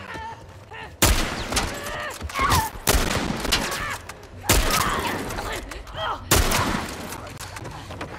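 A creature shrieks and growls close by.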